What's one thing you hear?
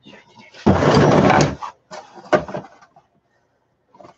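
A plastic crate knocks and scrapes.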